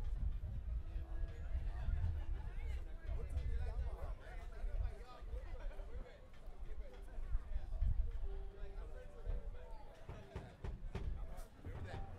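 A bass guitar thumps a low line.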